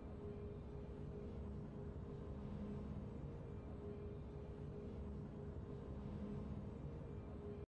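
Soft, steady game music plays in the background.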